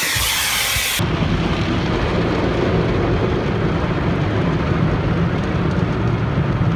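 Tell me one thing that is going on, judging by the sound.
Water sprays and foam brushes drum against a car's windshield.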